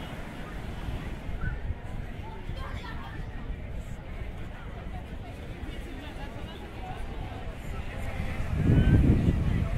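Men and women chat quietly at a distance.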